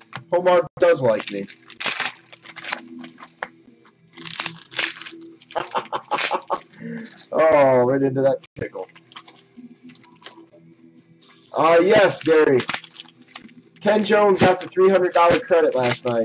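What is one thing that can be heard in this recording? A plastic card wrapper crinkles as it is torn open.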